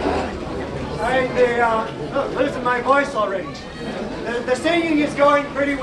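A man speaks loudly and with animation to a crowd.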